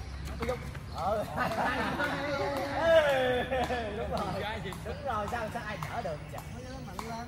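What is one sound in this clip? Adult men and women talk and call out nearby.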